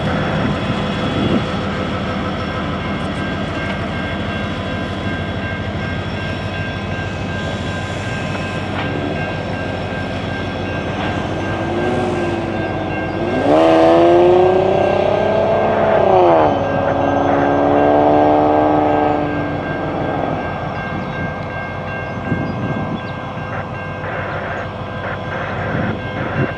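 An electronic railroad crossing bell rings steadily.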